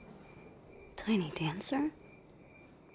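A young woman speaks tensely and close by.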